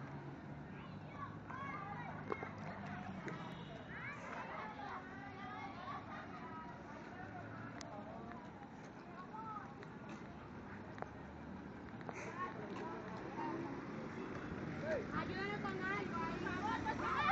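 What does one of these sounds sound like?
Young women shout and call out outdoors.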